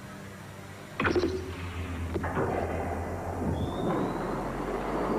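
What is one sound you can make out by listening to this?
A spaceship engine rumbles deeply.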